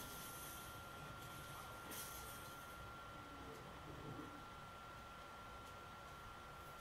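Faint laser blasts and game sound effects play from a television loudspeaker.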